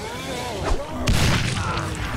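An explosion bursts loudly close by.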